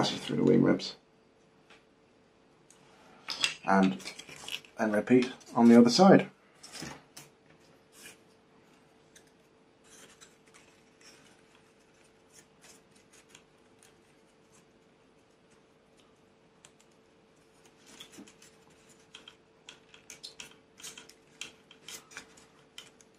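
Light wooden parts tap and click softly as they are handled.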